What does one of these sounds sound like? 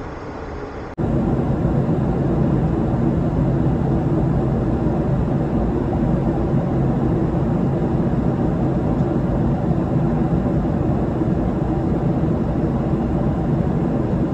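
Jet engines roar steadily outside an aircraft window.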